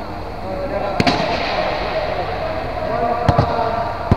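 A volleyball is struck with sharp slaps that echo through a large hall.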